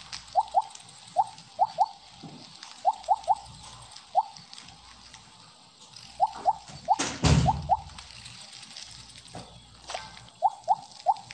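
Short rising electronic blips chime again and again as a game snake eats.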